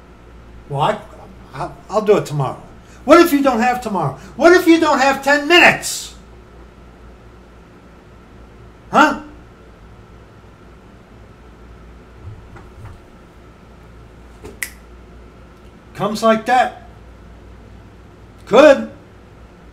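A middle-aged man talks with animation close to a microphone, in short bursts.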